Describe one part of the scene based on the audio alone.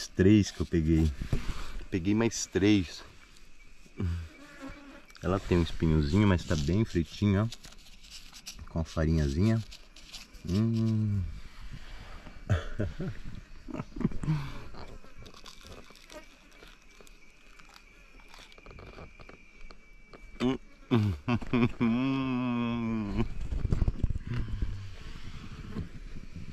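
A middle-aged man talks close up, outdoors.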